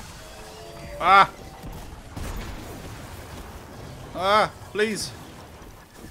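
A young man speaks with animation into a microphone.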